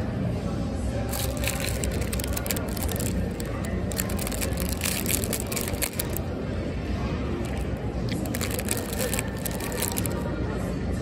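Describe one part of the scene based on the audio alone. A plastic wrapper crinkles as fingers handle it.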